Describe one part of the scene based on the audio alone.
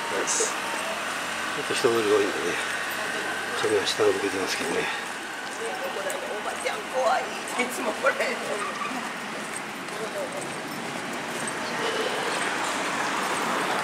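Light traffic hums along a street outdoors.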